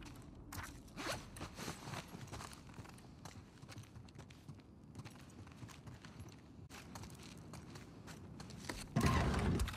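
Footsteps tread across a wooden floor.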